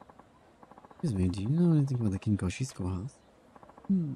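A young man speaks calmly to another man.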